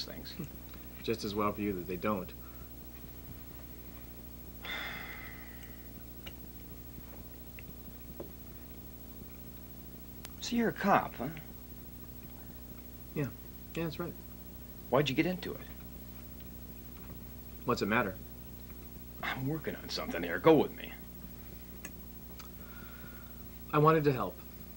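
A second man talks calmly close by.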